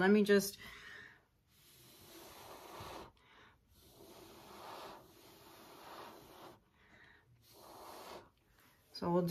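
A woman blows short puffs of air.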